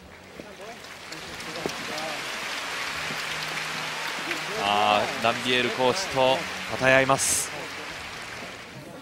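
A large crowd applauds in a big echoing arena.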